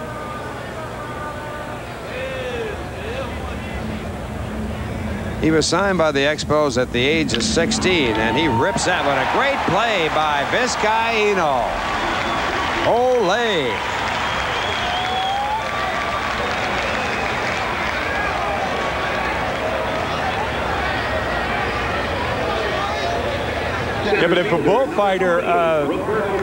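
A large crowd cheers loudly in an open stadium.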